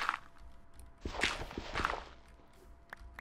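Gravel crunches as it is dug with a shovel.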